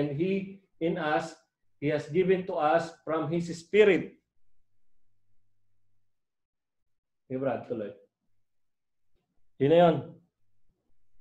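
A man speaks calmly into a nearby microphone, pausing between phrases.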